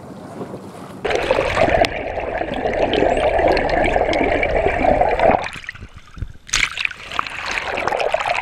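Water rushes and bubbles, heard muffled from underwater.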